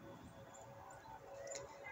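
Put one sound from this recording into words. Metal tongs clink against a pot.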